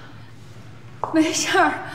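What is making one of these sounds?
A young woman speaks softly, close by.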